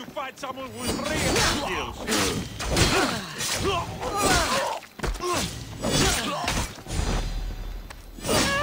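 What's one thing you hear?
Metal blades clash and strike repeatedly.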